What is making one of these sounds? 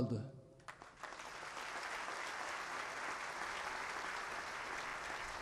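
A large crowd applauds steadily outdoors.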